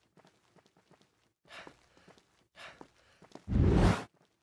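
Hands and feet knock on a wooden ladder in quick, light taps.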